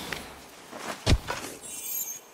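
A shovel digs into soil with a dull thud.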